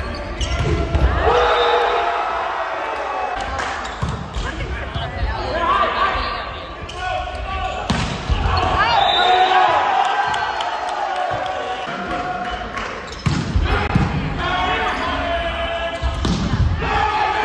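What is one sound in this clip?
A volleyball is struck with sharp smacks in a large echoing gym.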